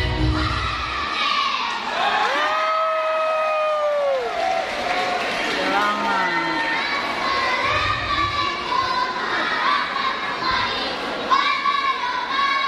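Young children sing together over a loudspeaker in a large echoing hall.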